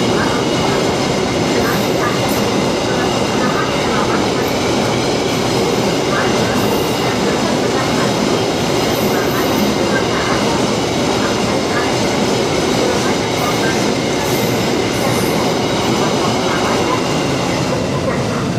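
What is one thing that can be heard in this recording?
A freight train rumbles past close by, with wheels clattering on the rails.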